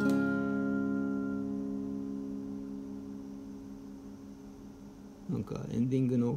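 An electric guitar chord rings out and slowly fades.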